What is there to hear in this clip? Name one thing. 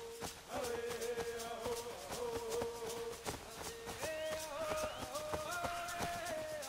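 Footsteps run quickly over grass and leaves.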